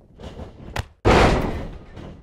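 A body slams onto a wrestling mat with a loud thud.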